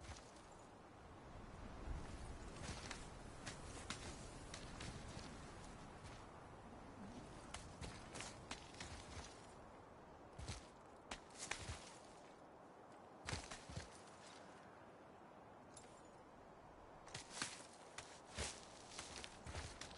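Hands and feet thud and scrape against rock during a climb.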